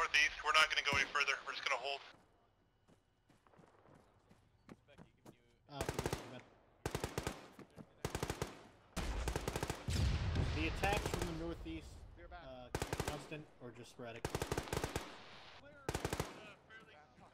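Footsteps crunch on gravel and dry grass.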